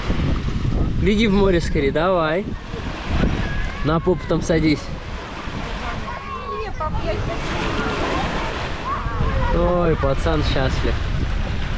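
A woman speaks in a high, sing-song voice close by.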